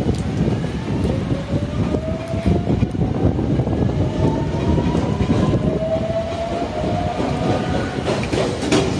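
Train wheels squeal on the rails with rising tones.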